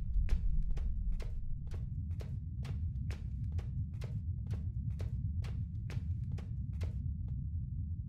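Footsteps tap quickly on a hard tiled floor.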